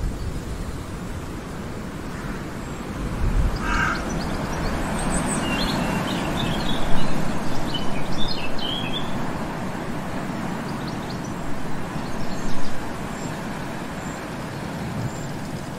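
Wind rustles the leaves of trees outdoors.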